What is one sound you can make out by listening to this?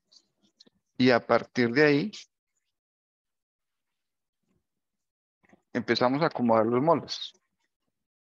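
An older man speaks calmly and close up through a microphone, in short bursts.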